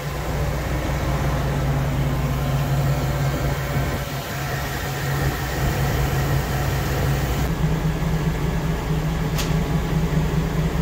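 An engine idles steadily with a low rumble.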